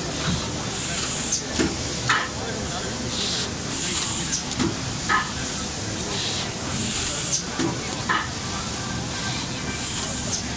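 A machine thumps and clacks in a steady repeating cycle.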